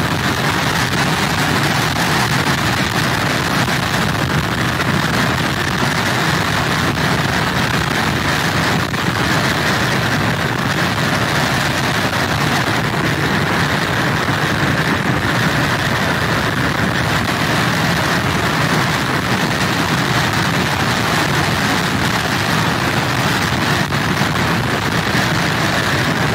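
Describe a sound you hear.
Heavy surf crashes onto a beach.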